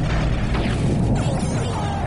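A ship explodes with a loud burst.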